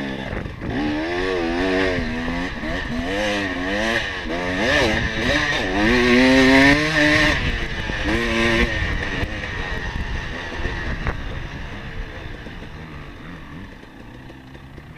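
A dirt bike engine revs up and down, rising and falling in pitch.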